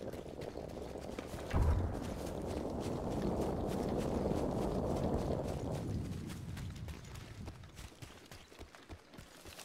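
Footsteps run over ground.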